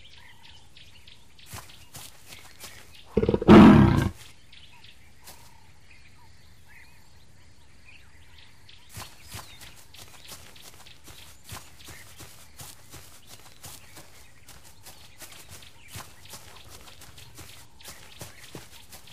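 A big cat's paws pad softly on dry ground.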